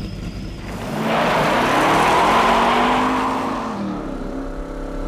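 A car's tyres skid and scrape over gravel.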